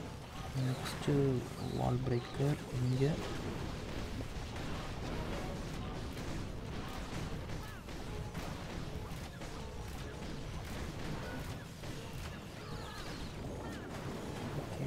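Game explosions and battle effects crackle and boom repeatedly.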